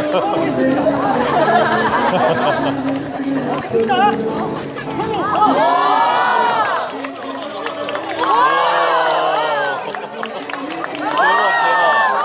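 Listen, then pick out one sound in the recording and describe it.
A crowd of adults and children chatters and calls out nearby outdoors.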